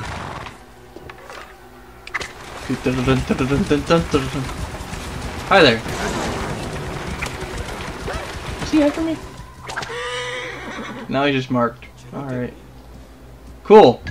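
Horse hooves pound on the ground at a gallop.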